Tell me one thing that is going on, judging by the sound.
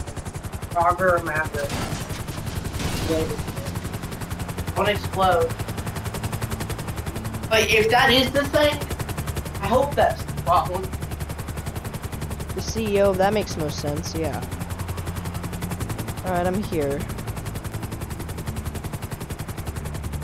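A helicopter's rotor thumps and drones steadily.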